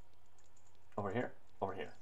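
A young man speaks briefly and close to a microphone.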